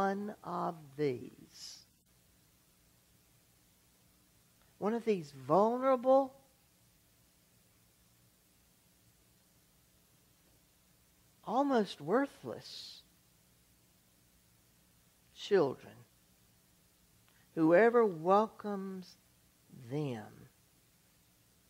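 An older man preaches in short phrases with long pauses.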